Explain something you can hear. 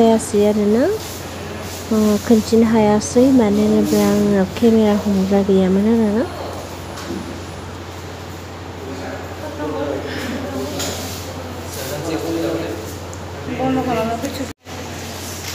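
A young woman speaks with animation close to the microphone.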